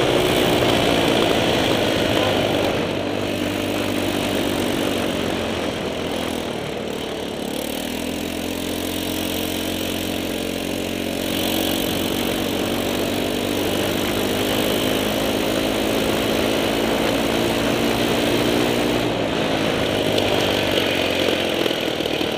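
A small engine drones close by, its pitch rising and falling as it speeds up and slows down.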